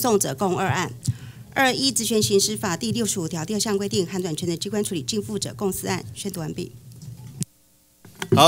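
A woman speaks steadily into a microphone.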